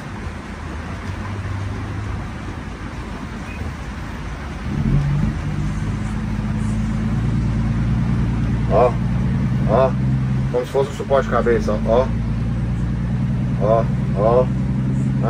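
A truck engine drones steadily and grows louder.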